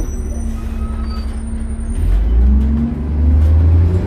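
A large truck engine rumbles close by.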